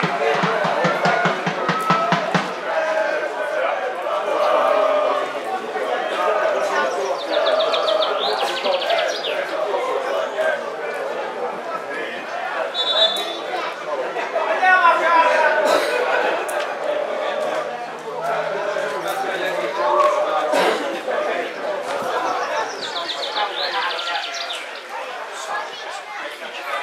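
Men call out to each other across an open sports field.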